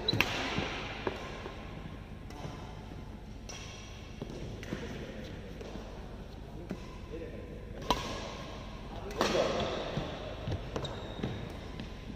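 Badminton rackets strike a shuttlecock back and forth in an echoing hall.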